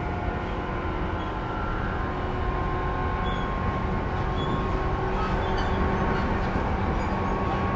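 An electric train rumbles steadily along the tracks, drawing closer.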